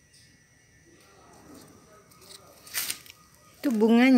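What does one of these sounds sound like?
Leaves rustle softly as they are brushed.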